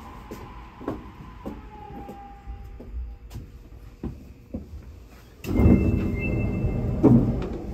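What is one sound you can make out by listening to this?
A train rumbles along its track.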